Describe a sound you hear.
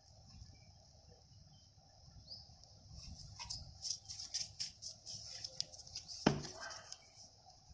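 A hand scrapes and rubs wet mortar in a metal tub.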